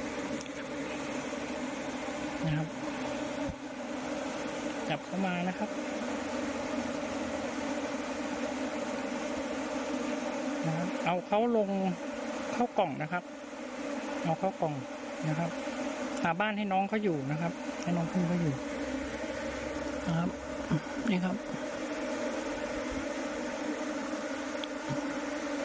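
A swarm of bees buzzes steadily close by.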